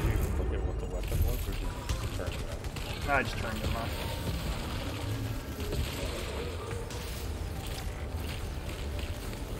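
Gunfire and blasts crackle and boom in a game.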